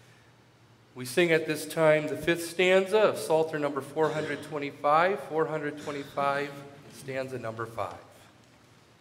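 A middle-aged man speaks steadily through a microphone in a large echoing hall.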